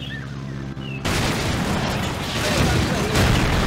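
An explosion booms and rumbles loudly.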